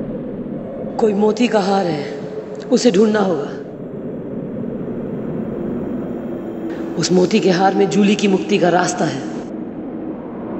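A young woman speaks close by in a tearful, anguished voice.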